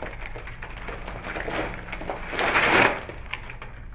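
A tower of playing cards collapses with a soft rushing patter of falling cards.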